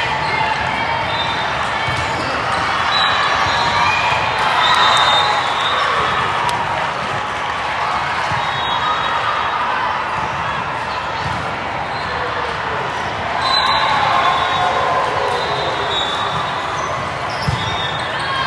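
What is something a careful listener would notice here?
Players' sneakers squeak sharply on the court floor.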